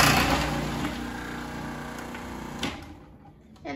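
A food processor whirs loudly and then stops.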